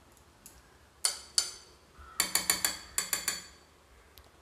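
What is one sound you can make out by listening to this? A metal spoon clinks sharply against a steel bowl.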